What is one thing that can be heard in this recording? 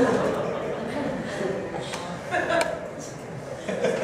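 People in a small audience laugh.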